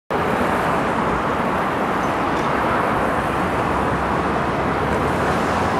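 A car drives past with its tyres hissing on a wet road.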